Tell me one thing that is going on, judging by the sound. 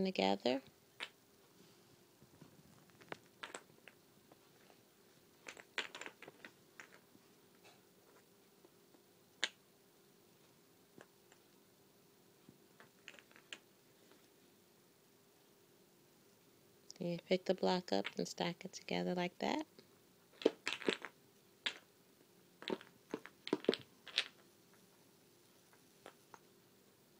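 Wooden blocks clack and knock together.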